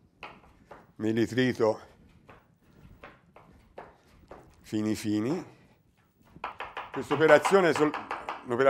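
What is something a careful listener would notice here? A middle-aged man talks calmly to the listener.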